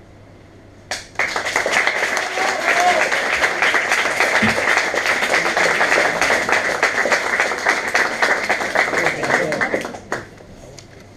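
An audience claps loudly.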